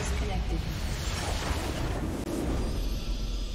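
A game's crystal base shatters with a deep blast.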